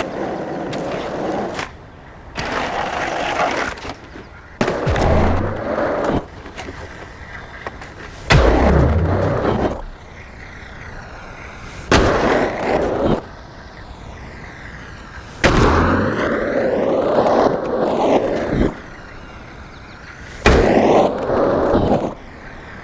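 Skateboard wheels roll and grind over smooth concrete in bursts.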